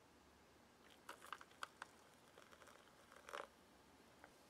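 Water pours into a pouch.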